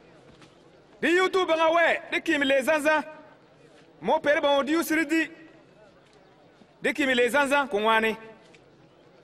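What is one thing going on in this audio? A man proclaims loudly in a strong, ringing voice.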